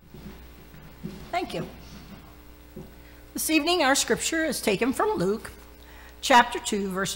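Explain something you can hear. An elderly woman reads aloud calmly through a microphone.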